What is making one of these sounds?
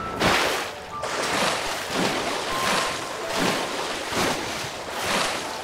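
Swimming strokes splash rhythmically through water.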